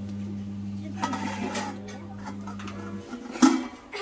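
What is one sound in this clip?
A metal plate clanks down onto a metal pan.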